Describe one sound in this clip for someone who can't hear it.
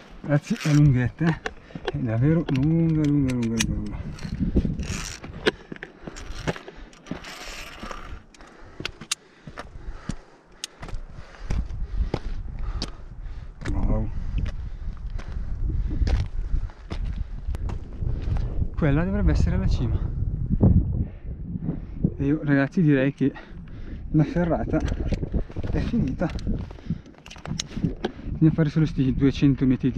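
A man talks breathlessly close to the microphone.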